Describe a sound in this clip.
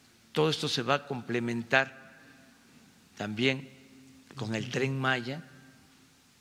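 An older man speaks calmly into a microphone, heard through a loudspeaker system.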